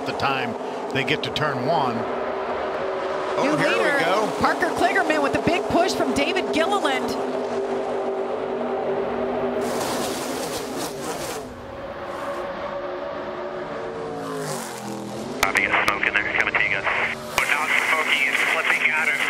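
Racing truck engines roar loudly as a pack speeds past.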